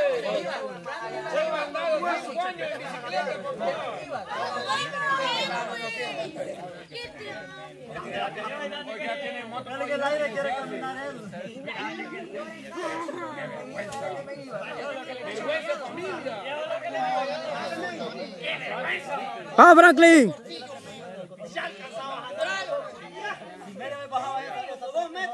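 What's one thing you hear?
A group of young men and women chat and call out outdoors.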